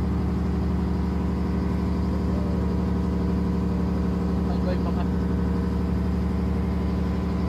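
A boat engine drones steadily and loudly.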